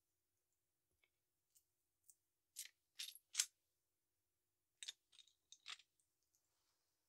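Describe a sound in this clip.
Small plastic bricks click and rattle as a hand sorts through them.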